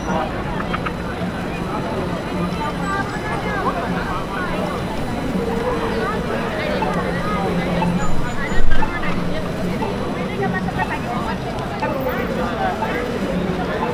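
City traffic hums steadily in the background.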